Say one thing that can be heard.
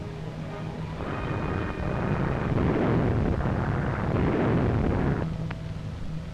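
Bombs explode with heavy booms.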